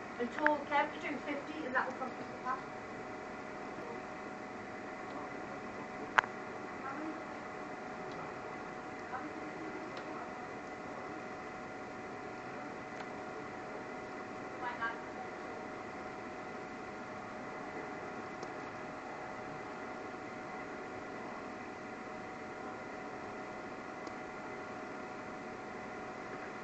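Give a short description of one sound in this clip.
Machines hum steadily.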